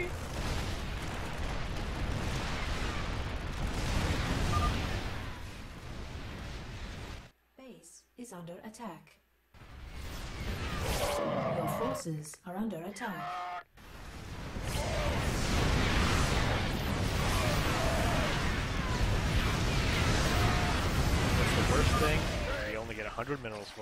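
Rapid gunfire and explosions rattle in a game battle.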